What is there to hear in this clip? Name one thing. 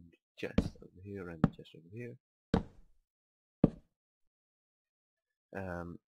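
Wooden blocks are placed down with dull knocks.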